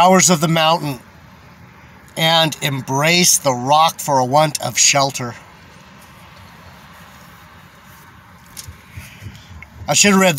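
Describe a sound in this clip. A middle-aged man speaks calmly and close by, with pauses.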